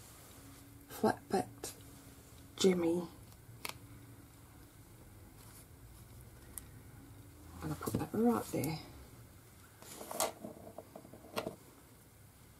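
Fingers press and rustle small paper pieces, with soft taps.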